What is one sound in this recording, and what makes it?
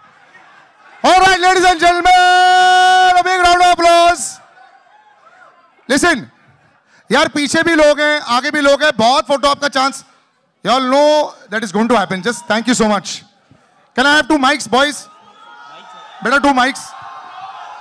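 A man speaks loudly with animation through a microphone and loudspeakers.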